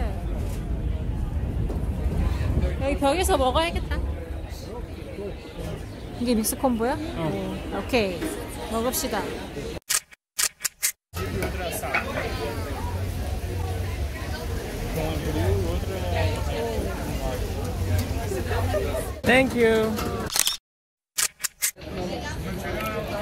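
A crowd murmurs in a busy outdoor market.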